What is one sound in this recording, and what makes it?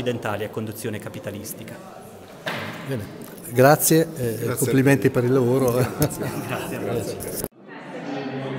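An older man asks questions close to a microphone.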